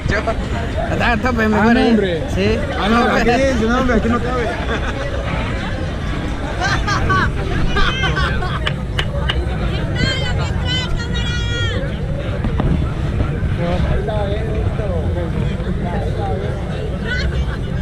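A crowd of young people shouts and cheers on a fairground ride.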